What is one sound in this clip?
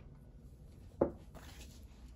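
A small glass jar is set down on a table with a soft knock.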